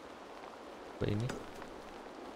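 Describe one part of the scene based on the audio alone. A man speaks briefly and closely into a microphone.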